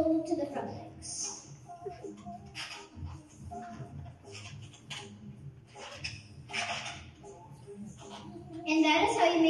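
A rubber balloon squeaks as it is twisted.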